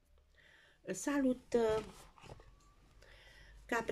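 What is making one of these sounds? A stack of playing cards slides and is lifted off a table.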